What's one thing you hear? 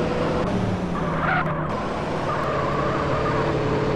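Tyres screech as a car drifts around a bend.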